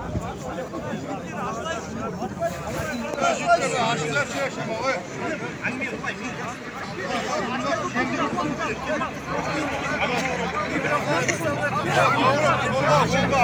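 A large crowd of men talks and murmurs loudly outdoors.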